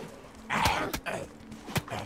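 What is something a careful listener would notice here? A heavy blow strikes with a sharp thud.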